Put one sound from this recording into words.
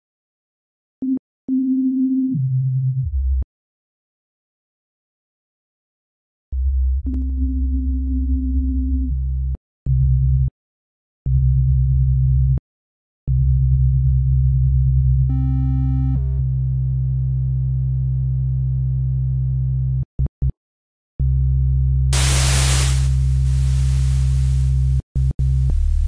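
A synthesizer plays deep bass notes in bursts.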